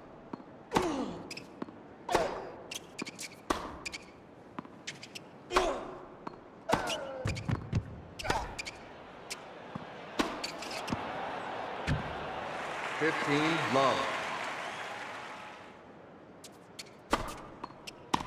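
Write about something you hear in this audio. A tennis ball is struck and bounces with sharp pops.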